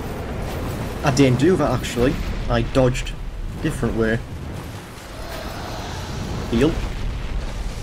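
A huge beast roars loudly.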